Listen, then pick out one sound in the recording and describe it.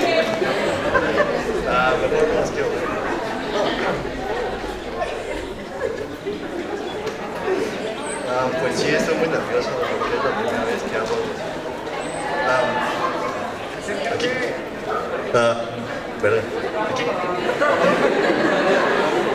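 A young man recites a poem with feeling through a microphone and loudspeakers.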